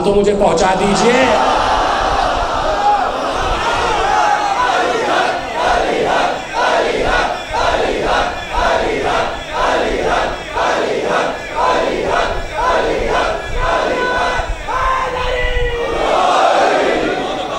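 Many men beat their chests in a steady rhythm.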